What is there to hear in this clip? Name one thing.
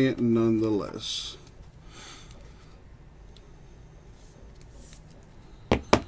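Trading cards rustle and slide against each other as they are handled.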